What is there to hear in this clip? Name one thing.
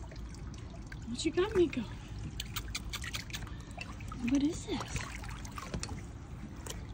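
A puppy splashes and paddles in shallow water.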